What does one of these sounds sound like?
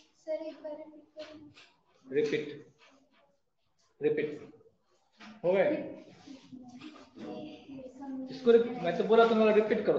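A man speaks calmly through a microphone, as if explaining.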